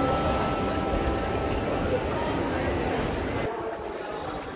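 A crowd chatters loudly in an echoing indoor space.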